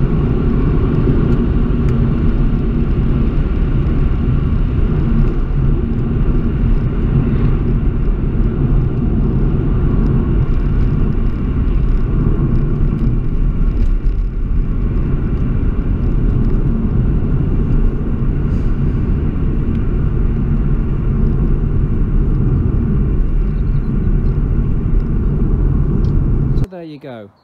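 Wind roars and buffets loudly around an open-top car driving along.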